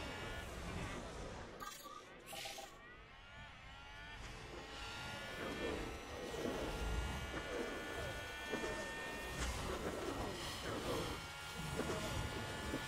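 A racing car engine whines at high revs and shifts through gears.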